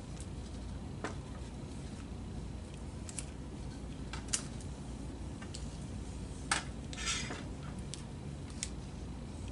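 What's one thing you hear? Stiff plastic parts click and knock as they are handled.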